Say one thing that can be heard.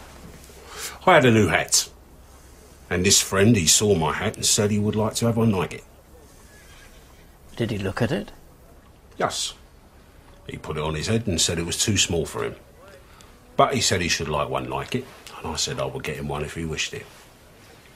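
An elderly man speaks slowly and quietly, close by.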